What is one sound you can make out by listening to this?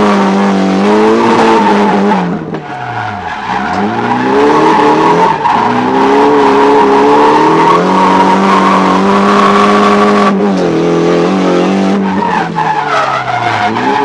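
Tyres squeal on pavement.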